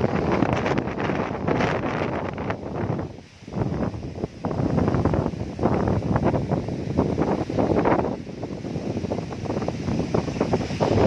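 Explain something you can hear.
Leaves rustle loudly as trees thrash in the wind.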